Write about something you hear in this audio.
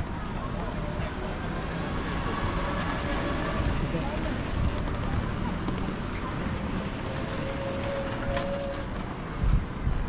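Scooters whir past close by.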